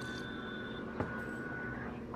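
A mug is set down on a hard surface with a light knock.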